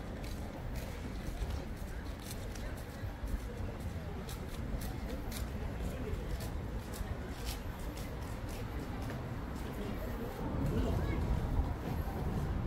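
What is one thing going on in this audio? Footsteps scuff on stone pavement.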